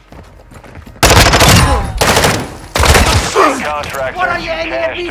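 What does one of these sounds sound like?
A rifle fires loud rapid shots.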